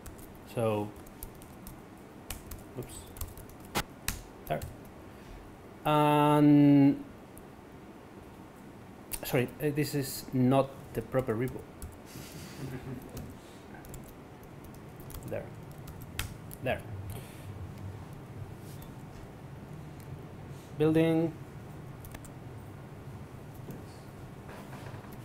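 Keys clatter on a laptop keyboard.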